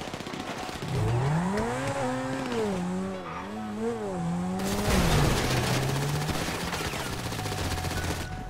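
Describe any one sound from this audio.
A car engine revs and drives off.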